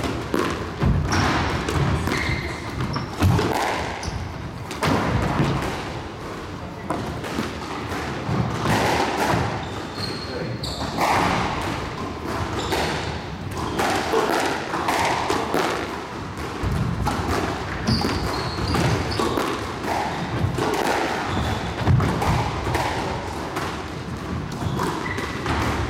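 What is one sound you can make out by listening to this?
Shoes squeak sharply on the court floor.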